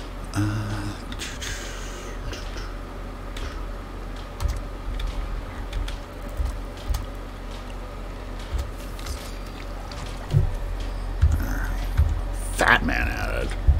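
Soft menu clicks tick now and then in a video game.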